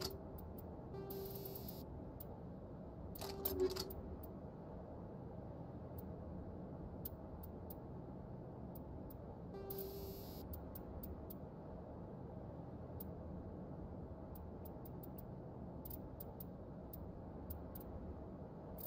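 Soft electronic menu clicks tick now and then.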